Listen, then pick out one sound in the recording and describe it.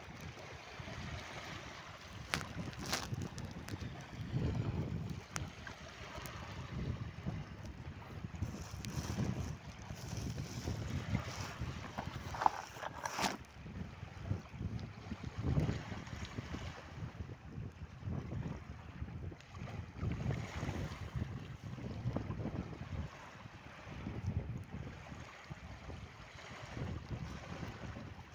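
Wind blows hard outdoors, buffeting the microphone in gusts.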